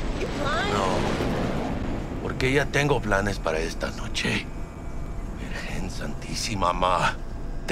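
A man talks on a phone with agitation, close by.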